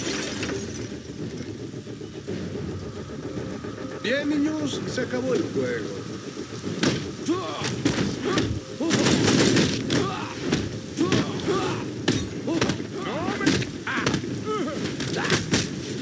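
Rain pours steadily.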